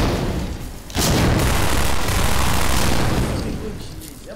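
Rapid gunfire bursts ring out.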